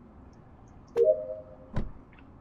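A short electronic chime rings as a task finishes.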